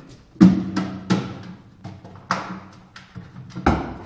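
A dog's claws tap and scrape on a wooden tabletop.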